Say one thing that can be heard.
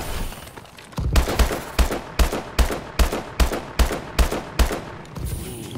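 Gunshots fire in quick succession, loud and close.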